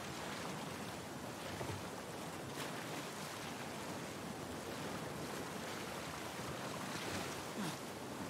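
Water splashes loudly as someone swims.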